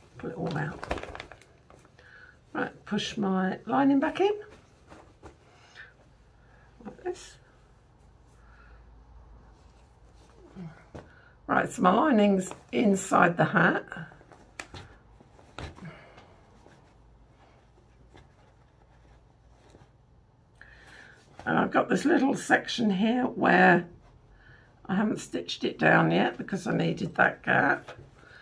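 Fabric rustles as it is handled.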